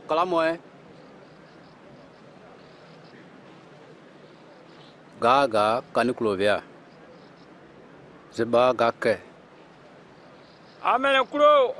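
A man speaks nearby in short, firm phrases with long pauses between them.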